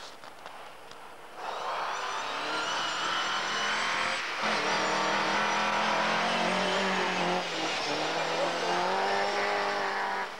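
Tyres spray through snow.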